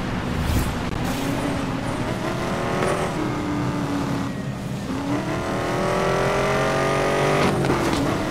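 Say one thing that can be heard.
A sports car engine roars at high speed, rising in pitch and dropping with each gear change.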